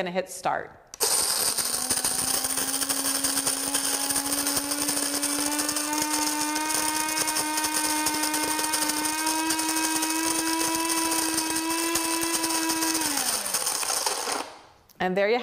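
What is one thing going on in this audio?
A coffee grinder whirs loudly with a steady hum, then winds down.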